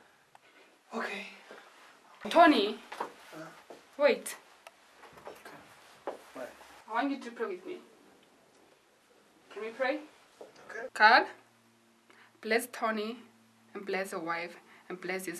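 A young woman speaks tearfully, close by.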